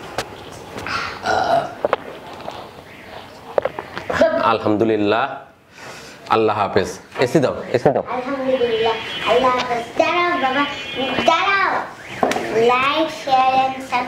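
A young boy speaks excitedly close by.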